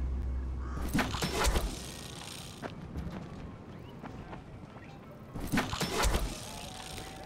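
Footsteps thud heavily as a runner lands from a jump.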